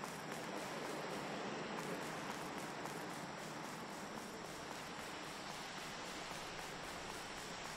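Footsteps crunch steadily on stony ground.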